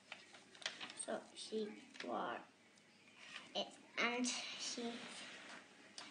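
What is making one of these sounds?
A young girl reads aloud slowly and haltingly, close by.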